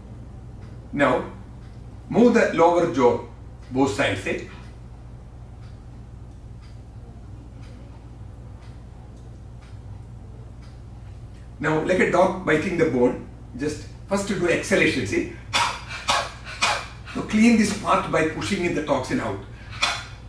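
A middle-aged man speaks calmly close to a microphone, with pauses.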